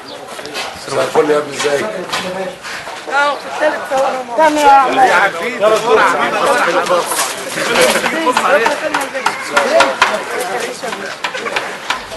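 A crowd of men talk over one another close by.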